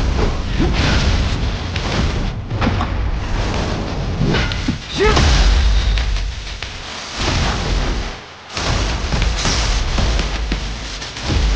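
Energy blasts crackle and roar.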